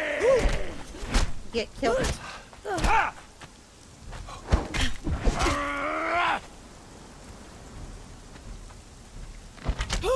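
Blades strike and clash in a fight.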